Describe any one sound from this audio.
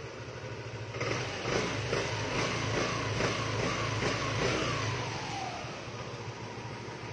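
A car engine revs up several times and then drops back.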